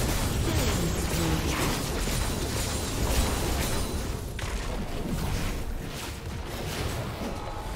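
Spell blasts and weapon clashes crackle and thump in a busy fight.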